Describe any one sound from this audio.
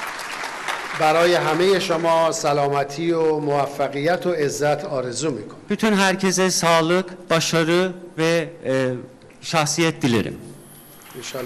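A middle-aged man speaks with animation into a microphone in a large echoing hall.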